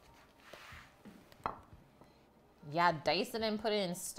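A paper plate is set down on a wooden table with a light tap.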